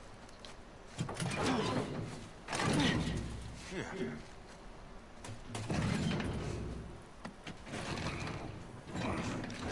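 A heavy metal door rattles and thuds as it is pushed.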